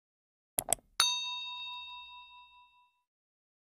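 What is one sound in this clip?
A bell chime rings and fades.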